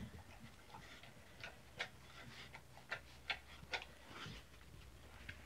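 A dog laps and crunches food from a metal bowl.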